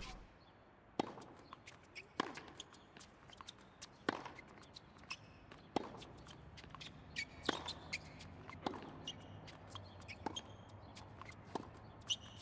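A tennis ball is struck back and forth with sharp pops of rackets.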